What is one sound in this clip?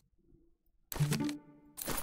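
A short game chime rings out as an upgrade pops up.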